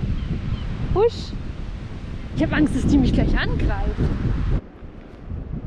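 A young woman talks cheerfully close to a microphone.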